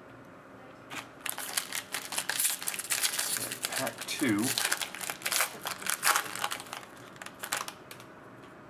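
Foil wrapping crinkles and tears as it is pulled open.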